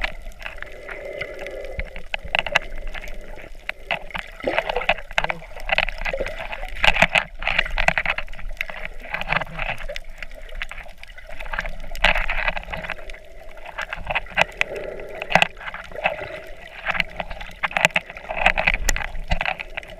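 Water swishes and crackles around the underwater microphone.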